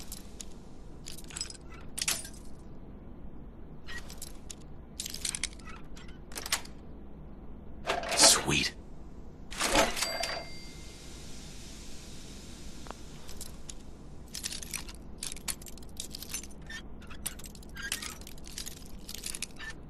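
A bobby pin scrapes and clicks inside a lock.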